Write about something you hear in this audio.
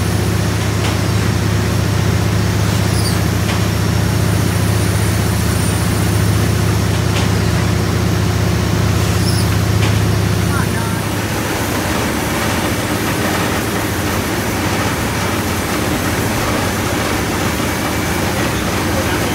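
A steam engine rumbles and clanks steadily in a noisy room.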